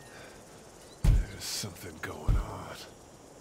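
A man knocks on a glass door.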